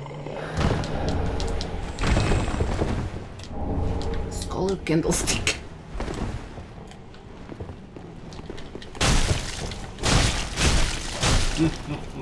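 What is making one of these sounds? Sword blows clash and thud in a fight.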